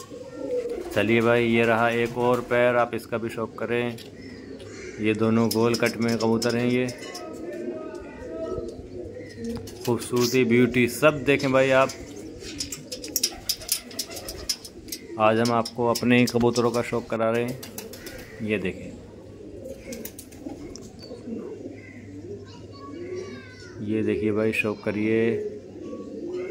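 Pigeons coo in deep, rolling bursts close by.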